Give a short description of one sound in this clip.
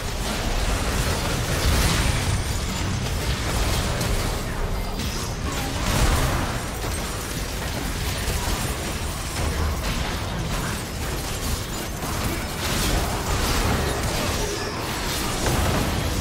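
Game spell effects burst, crackle and clash in a busy fight.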